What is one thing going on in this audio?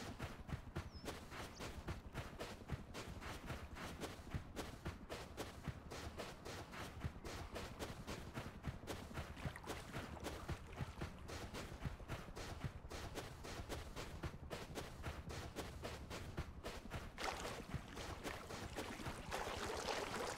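Footsteps crunch steadily on sand and gravel.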